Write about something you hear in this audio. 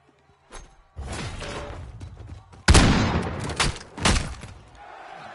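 Gunshots ring out in quick, loud bursts.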